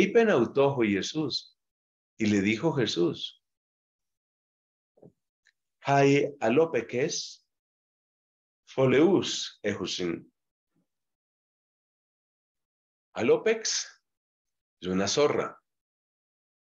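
A man speaks calmly into a microphone, in short phrases with pauses.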